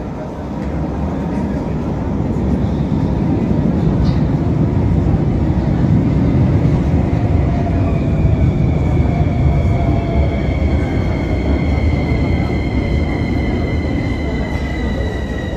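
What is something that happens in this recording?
A large crowd murmurs and chatters in an echoing underground hall.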